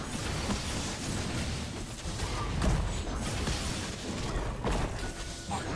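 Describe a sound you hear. Impacts thud as characters strike each other.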